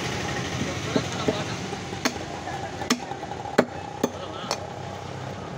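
A cleaver chops sharply into bone on a wooden block.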